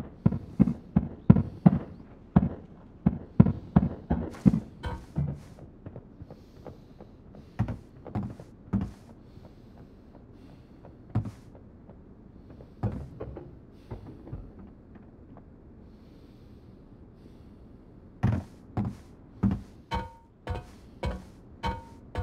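Heavy footsteps thud on a hard floor at a steady walking pace.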